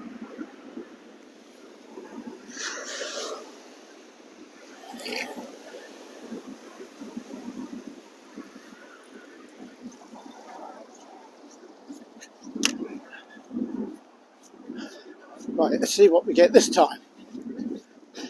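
Wind blows across the microphone in gusts.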